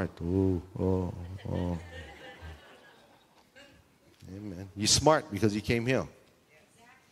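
A man speaks calmly and clearly into a microphone, with pauses.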